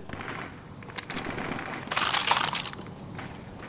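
A rifle bolt clicks as a rifle is reloaded.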